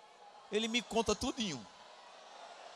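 A man speaks with animation into a microphone, heard through loudspeakers in a large hall.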